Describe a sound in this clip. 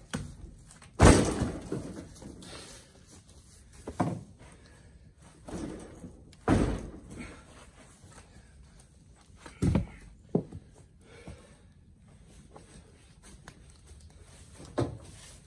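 Heavy logs thud onto a pickup truck's bed.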